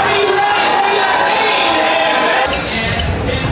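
A man sings through loudspeakers in a large venue.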